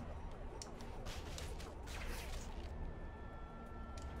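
A rope swishes through the air in quick whooshes.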